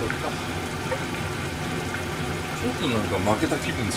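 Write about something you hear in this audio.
A metal frying pan knocks lightly against the stove.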